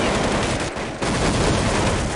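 A grenade explodes with a loud boom.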